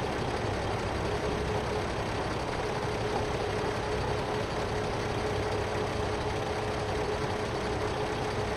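A hydraulic crane arm whines as it moves.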